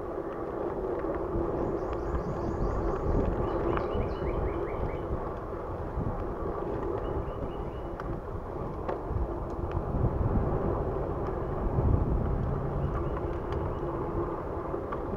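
A bicycle chain and frame rattle with small clicks over bumps.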